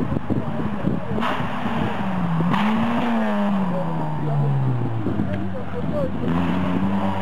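A rally car engine revs hard and roars past, its pitch rising and falling.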